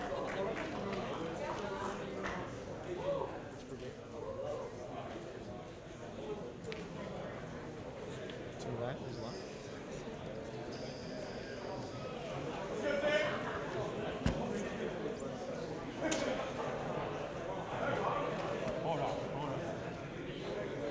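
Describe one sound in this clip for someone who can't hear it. Young men talk in low voices in an echoing room.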